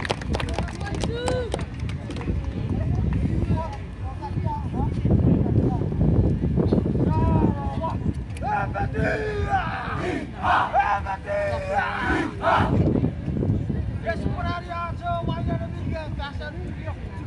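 A group of women chant and sing loudly outdoors.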